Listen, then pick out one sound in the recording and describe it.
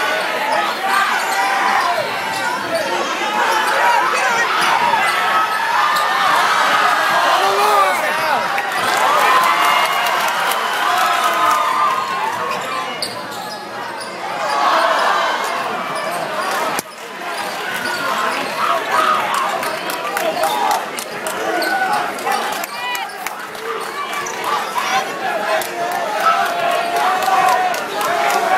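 A large crowd cheers and shouts in a large echoing hall.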